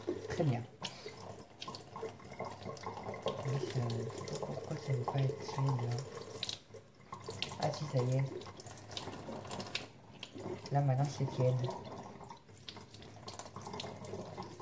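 Dishes clink and knock in a sink.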